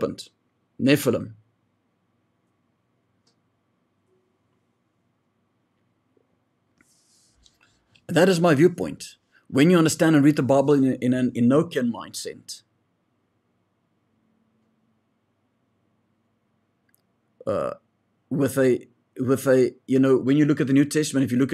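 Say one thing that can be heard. A man speaks calmly and closely into a microphone, with long pauses.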